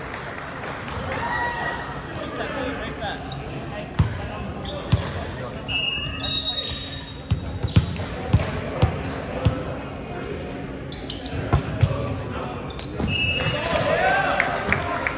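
Young men shout and call out to each other across the court.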